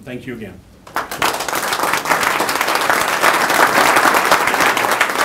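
A group of people applaud in a room.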